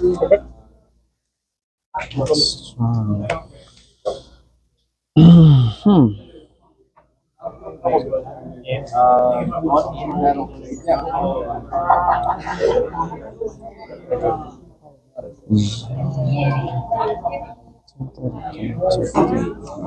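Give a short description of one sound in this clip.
Playing cards slap softly onto a mat.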